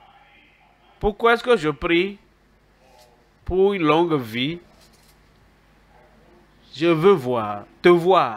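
An elderly man preaches with animation through a microphone, in short emphatic bursts.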